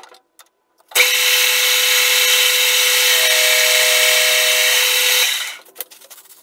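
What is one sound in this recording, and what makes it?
A lathe motor whirs loudly as the chuck spins.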